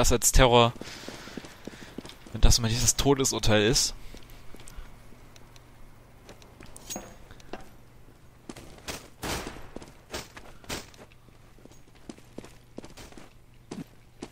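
Footsteps patter quickly across hard ground.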